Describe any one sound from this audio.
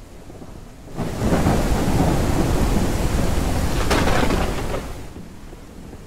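Heavy rain pours and splashes on a wooden deck outdoors.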